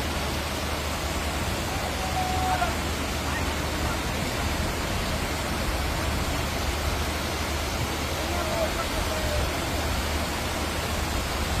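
Floodwater rushes and splashes along a street.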